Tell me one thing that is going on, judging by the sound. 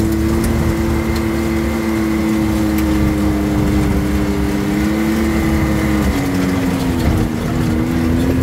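A car engine hums steadily, its pitch dropping slightly near the end.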